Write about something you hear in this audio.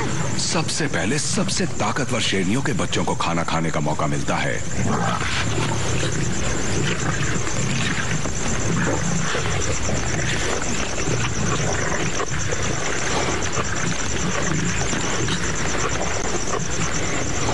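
Lions tear and crunch at a carcass.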